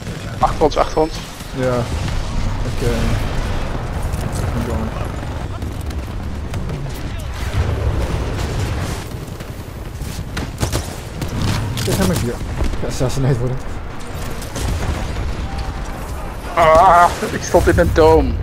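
Gunfire bursts and explosions boom.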